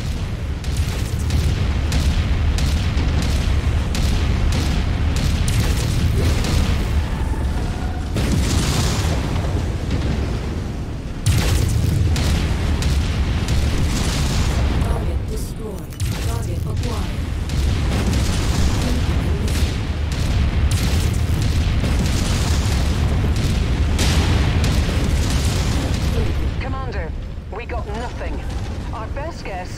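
A deep mechanical rumble drones steadily.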